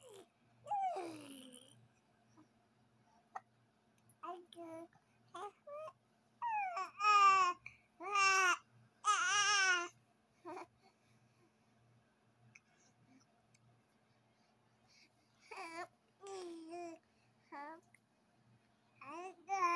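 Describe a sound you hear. A baby coos and babbles softly close by.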